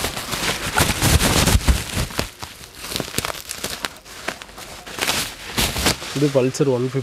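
Plastic wrapping crinkles and rustles close by.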